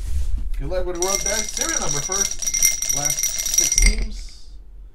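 A small ball rattles around inside a glass.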